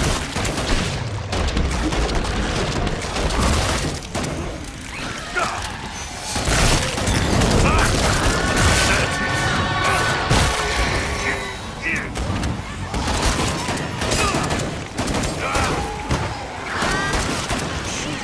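Monsters screech and shriek.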